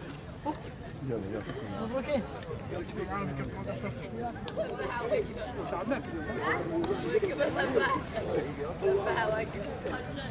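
Several men talk with one another nearby, outdoors in an open space.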